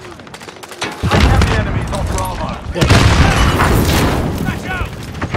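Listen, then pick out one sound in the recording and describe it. Gunfire rattles in loud, rapid bursts.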